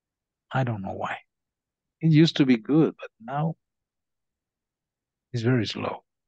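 A man speaks calmly through a microphone, in short phrases with pauses.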